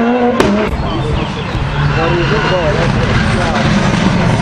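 A second rally car engine roars as the car approaches.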